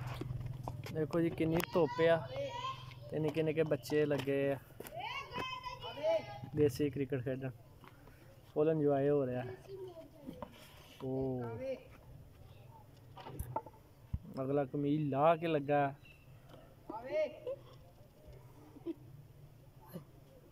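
A wooden stick taps against a brick.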